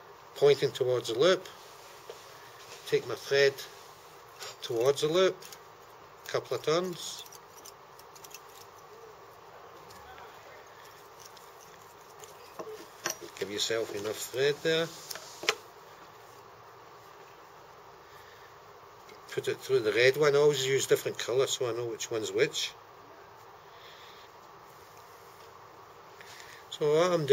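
An older man talks calmly close by in short phrases.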